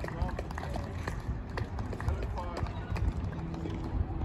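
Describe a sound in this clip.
A tennis ball is struck with a racket outdoors.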